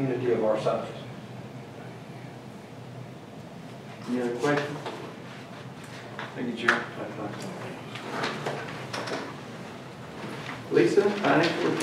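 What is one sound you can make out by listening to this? A man speaks through a microphone in an echoing room, in short calm phrases.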